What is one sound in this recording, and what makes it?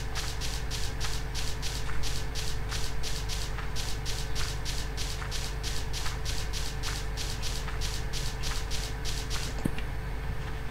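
Footsteps crunch quickly and steadily on sand.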